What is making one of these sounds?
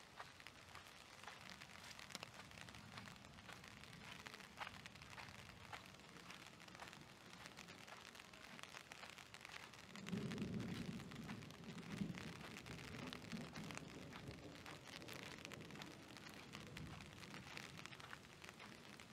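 Rain patters steadily on a wet street outdoors.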